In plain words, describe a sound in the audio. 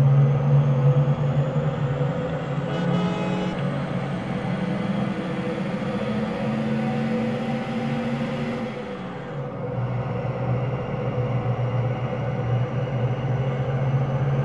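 A bus engine drones steadily, dipping briefly as it shifts gear.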